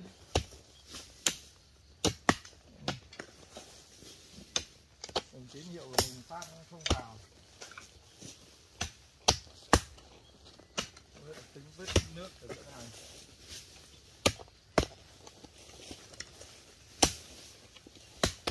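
Hoes strike and chop into dry earth again and again.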